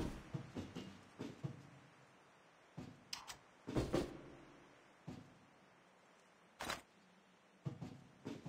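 Footsteps thud on a hard metal floor.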